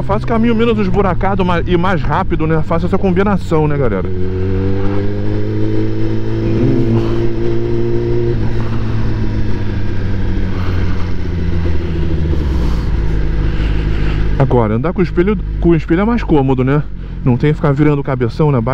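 A motorcycle engine hums steadily, shifting pitch as it speeds up and slows.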